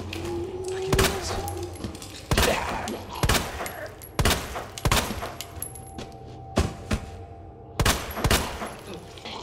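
A handgun fires several sharp shots, echoing in a hallway.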